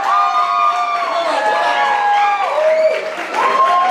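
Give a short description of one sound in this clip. A man shouts excitedly through a microphone.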